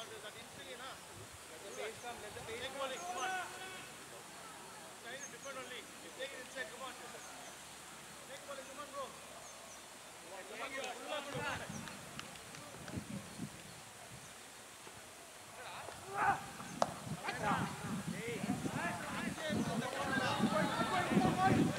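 Men call out and chat across an open field.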